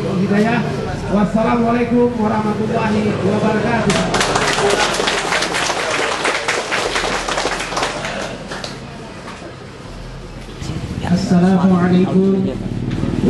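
A middle-aged man speaks with animation into a microphone, heard through a loudspeaker.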